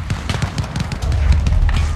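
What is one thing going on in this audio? An explosion booms nearby with a deep rumble.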